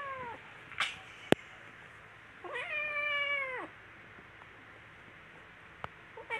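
Kittens scuffle and paw at each other on a blanket.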